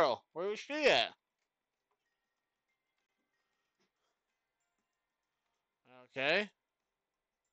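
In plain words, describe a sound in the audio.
A man speaks in short, lively bursts through a microphone.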